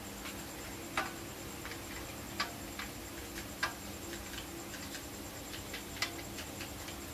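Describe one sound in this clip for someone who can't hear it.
Hands knock softly against a machine.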